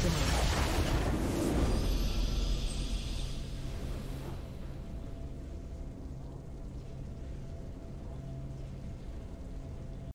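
A game victory fanfare plays.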